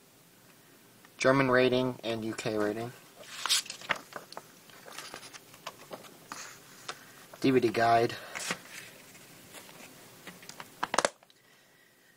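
A plastic disc case clicks and rattles as it is handled.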